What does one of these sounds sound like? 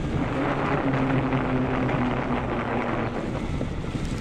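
An electric bike motor whines steadily.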